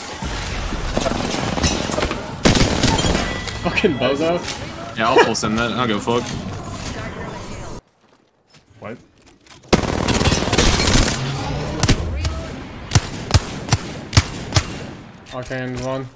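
Video game gunfire rattles in quick bursts.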